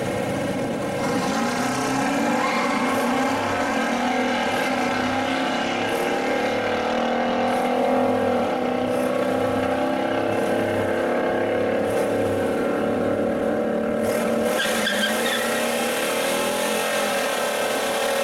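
A big engine revs up and down in loud bursts.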